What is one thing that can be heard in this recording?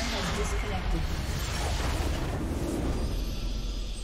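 A blast booms as a structure explodes in a game.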